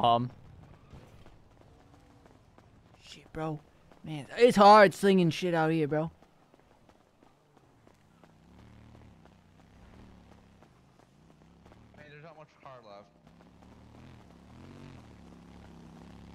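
Footsteps tap on pavement at a steady walking pace.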